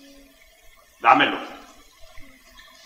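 A second man answers with a short loud cry.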